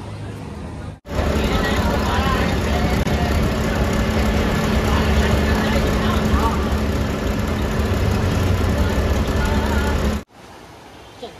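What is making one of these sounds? A vehicle engine rumbles loudly on the road.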